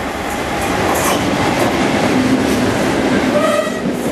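A Class 37 English Electric diesel locomotive roars past at speed.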